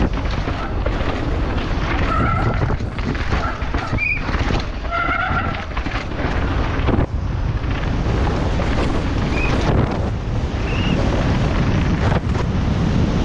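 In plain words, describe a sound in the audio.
Bicycle tyres rattle and crunch over dirt and rocks.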